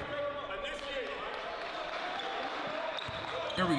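A basketball bounces on a hard court floor.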